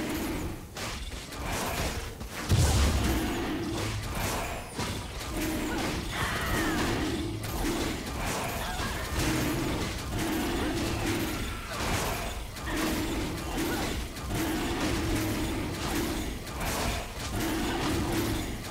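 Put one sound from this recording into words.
Game fighting effects thud, clash and crackle in quick bursts.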